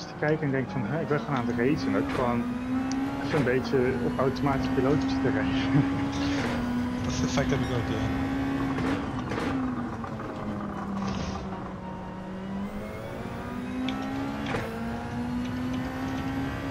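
A racing car engine drones steadily, its pitch rising and dropping with gear changes.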